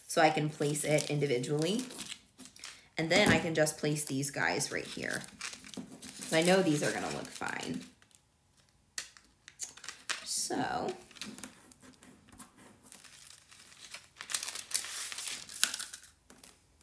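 Plastic transfer tape crinkles and peels away from a surface.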